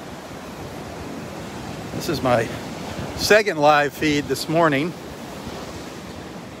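Small waves wash steadily onto a beach.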